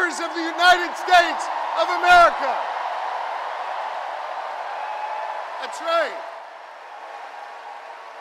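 A large crowd cheers and applauds.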